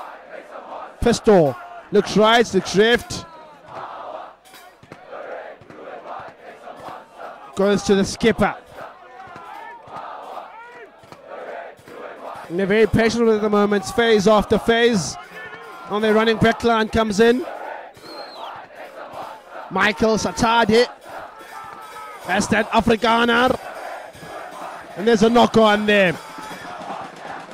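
Young men shout loudly across an open field.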